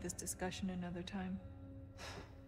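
A woman speaks softly and slowly.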